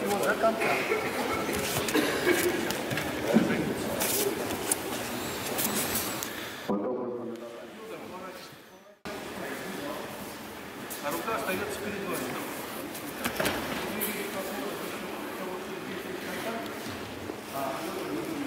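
Bare feet thump and shuffle on a padded mat.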